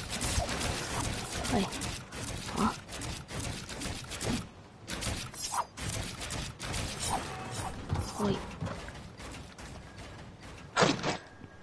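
Video game building pieces snap into place with quick, repeated clicks.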